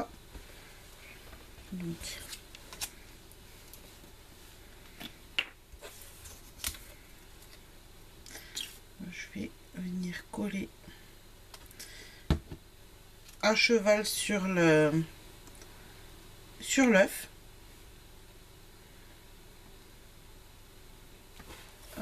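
Paper rustles and taps softly as it is handled.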